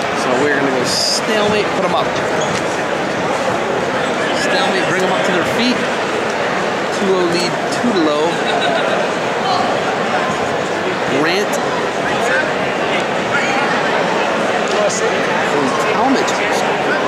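A crowd of spectators murmurs and calls out in an echoing gym.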